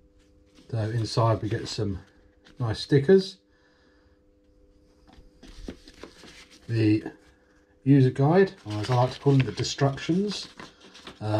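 Paper rustles as it is handled and unfolded.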